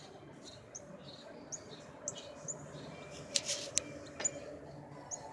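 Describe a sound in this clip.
A small bird chirps with short, high notes.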